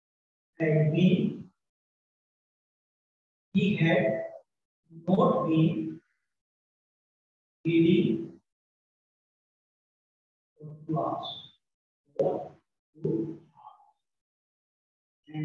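A man speaks in short, calm phrases nearby, with pauses between them.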